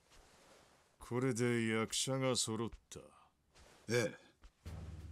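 A man speaks calmly and gravely, close by.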